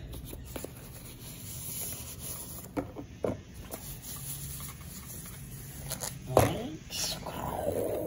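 Thin plastic wrapping rustles and crinkles.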